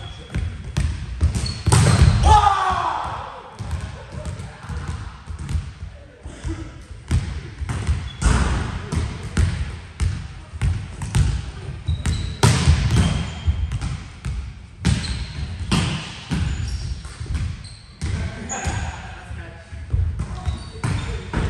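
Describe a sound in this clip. A volleyball is struck with sharp slaps, echoing in a large hall.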